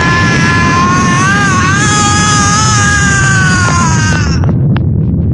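A man screams loudly and strains.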